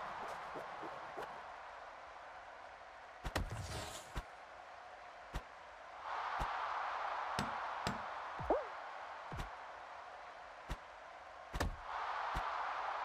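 Cartoonish punches thump and smack again and again.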